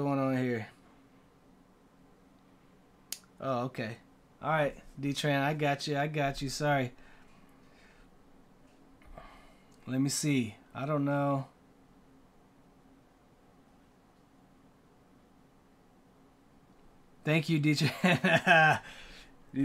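A man talks in short bursts, close to a microphone, with pauses between.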